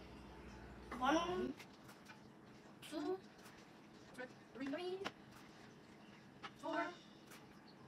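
A young boy talks excitedly close by.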